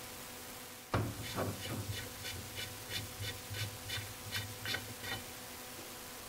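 A metal socket clicks and taps against a metal part.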